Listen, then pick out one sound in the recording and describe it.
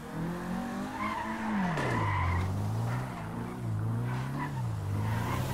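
Tyres screech as a car skids and spins out.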